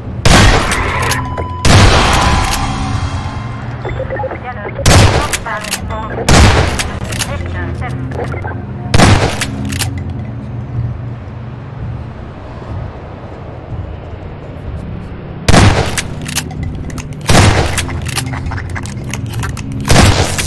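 A shotgun fires loud blasts that echo between buildings.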